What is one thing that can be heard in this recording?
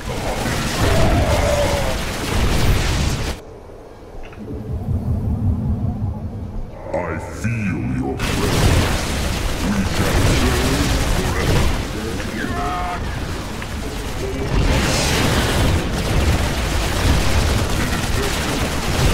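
Rapid gunfire rattles in a battle.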